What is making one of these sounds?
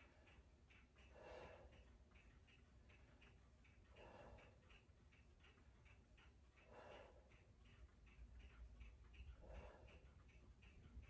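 A man breathes slowly and deeply, close by.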